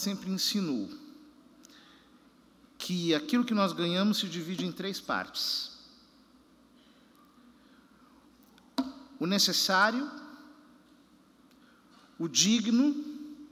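A man speaks calmly through a microphone in a large echoing hall, with pauses between phrases.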